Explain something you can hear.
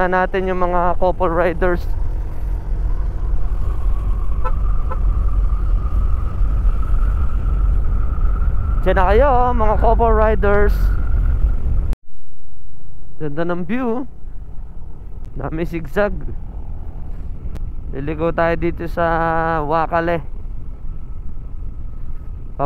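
A motorcycle engine hums and revs up and down while riding.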